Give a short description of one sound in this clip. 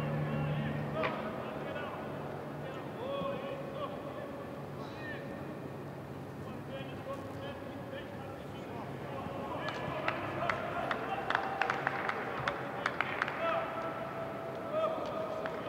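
Young men chat and laugh nearby, outdoors.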